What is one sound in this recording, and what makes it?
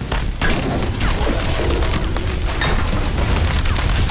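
A hammer clangs on metal.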